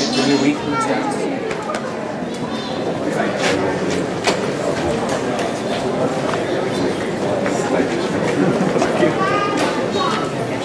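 Young children's voices chatter and call out in a hall with some echo.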